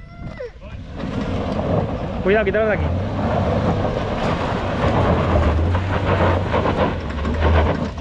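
An off-road vehicle's engine hums and revs as it climbs a slope.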